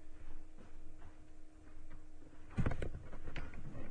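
A wooden cupboard door creaks and knocks shut.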